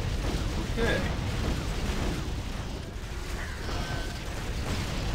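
Magic spells crackle and zap in a busy fight.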